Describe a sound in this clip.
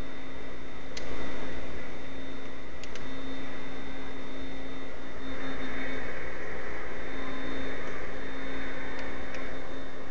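Crowd noise from a basketball video game plays through a television speaker.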